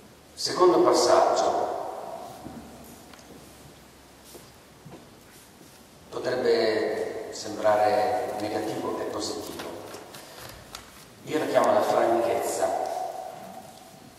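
A middle-aged man speaks calmly into a microphone in an echoing room.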